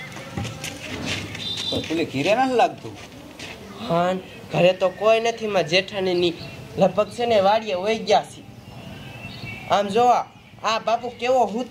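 A man speaks, close by.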